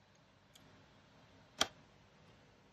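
A plug clicks into a small socket.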